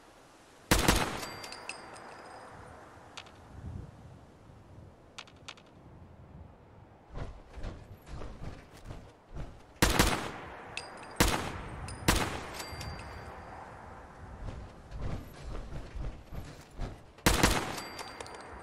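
A rifle fires loud shots that echo and fade.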